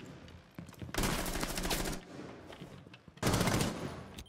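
Rapid gunfire rings out in short, loud bursts.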